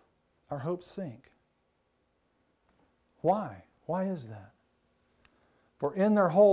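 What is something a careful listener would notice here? A man preaches with emphasis through a microphone, in short bursts with pauses.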